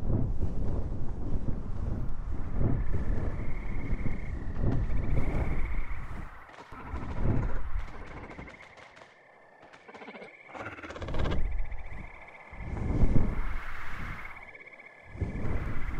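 Wind rushes loudly past in strong gusts.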